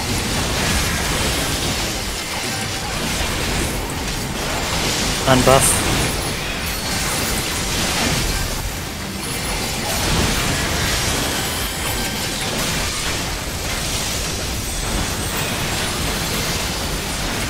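Spell effects whoosh and crackle in a fierce battle.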